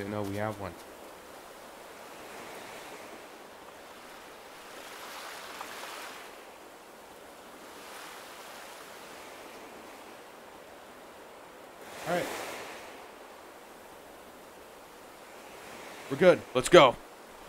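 Small waves wash gently against a shore.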